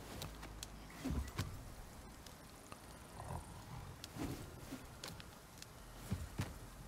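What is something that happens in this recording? A tool strikes rock with heavy thuds.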